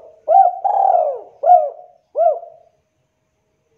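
A spotted dove coos in a short phrase of rising and falling notes.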